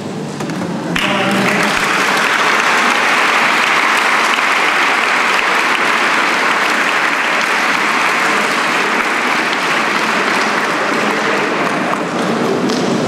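A crowd applauds steadily in a large echoing hall.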